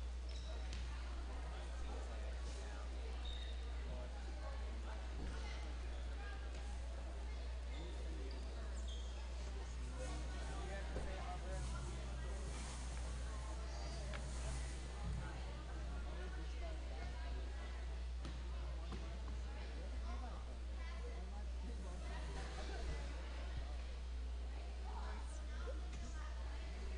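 Players and spectators chatter in a large echoing gym.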